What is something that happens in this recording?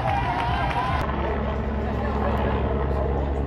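A helicopter drones overhead.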